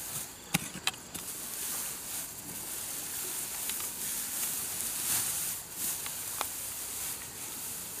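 Grass and weeds rustle as they are pulled up by hand.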